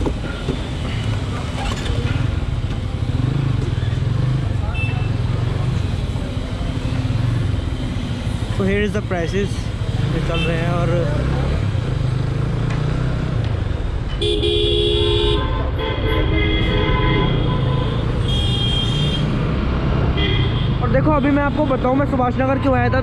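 A motorcycle engine idles and then rumbles steadily while riding.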